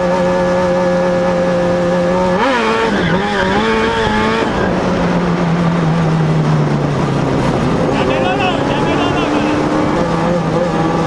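A car engine roars loudly and revs up and down.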